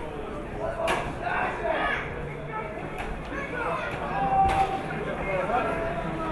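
A crowd of spectators cheers and murmurs outdoors.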